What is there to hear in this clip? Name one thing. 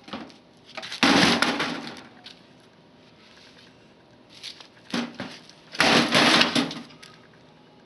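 A heavy television smashes down hard onto concrete.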